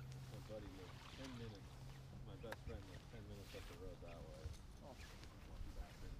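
A man talks casually nearby outdoors.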